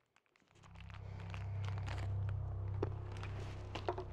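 A man's footsteps approach across a hard floor.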